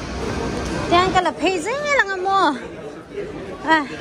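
A crowd of people chatters in a large hall.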